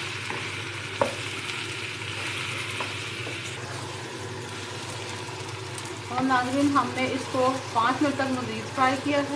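A spoon scrapes and knocks against a metal pan as food is stirred.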